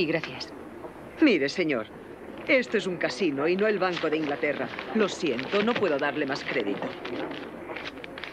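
An older woman talks with animation.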